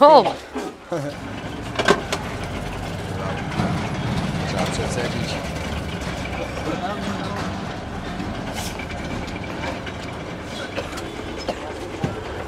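A sugarcane press machine whirs and grinds steadily.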